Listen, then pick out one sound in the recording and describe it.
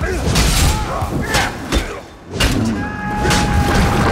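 A burst of flame roars and crackles.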